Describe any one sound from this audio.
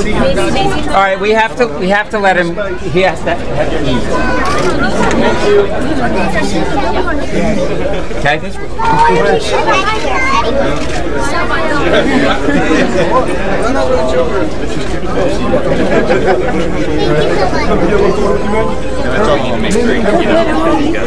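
A large crowd of men and women chatter loudly and all at once, close by, in a room with a lot of echo.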